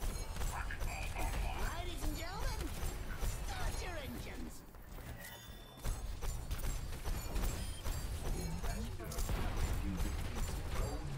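Guns fire in rapid bursts with sharp bangs.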